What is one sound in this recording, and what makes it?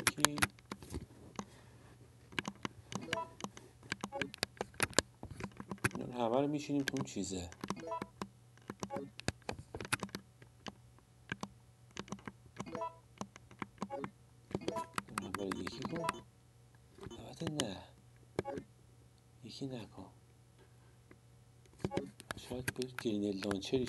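Short electronic beeps and clicks sound as game menu items are selected.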